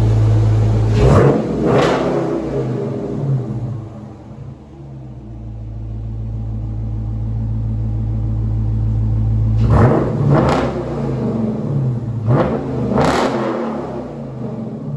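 A car engine revs hard several times, roaring up and settling back.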